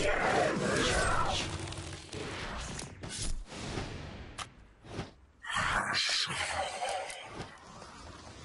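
Sharp hits and blasts strike again and again.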